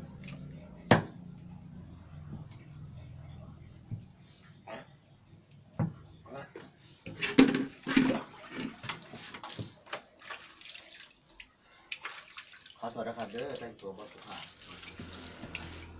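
A knife chops on a wooden board with sharp knocks.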